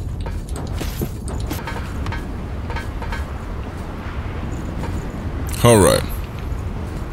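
A sword swings and strikes in a video game.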